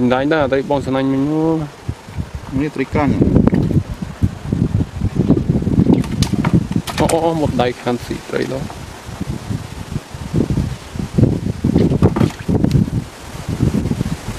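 Water sloshes in a bucket as fish are rinsed.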